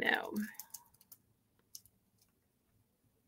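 Plastic wrapping crinkles under fingers.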